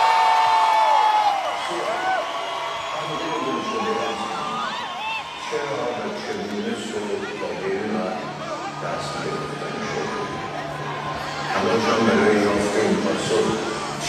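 An audience cheers and whistles loudly.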